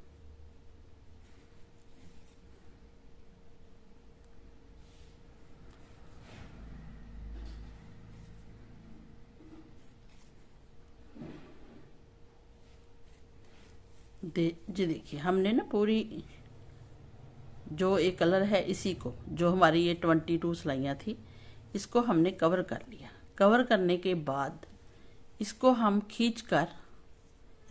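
Knitted wool fabric rustles softly as it is handled.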